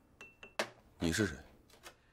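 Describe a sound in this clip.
A man asks a startled question close by.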